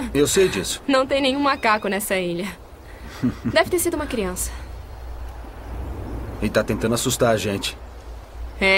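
A young man talks calmly up close.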